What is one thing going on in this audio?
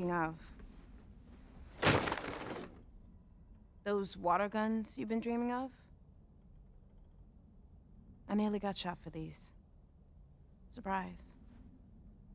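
A young woman speaks quietly and calmly nearby.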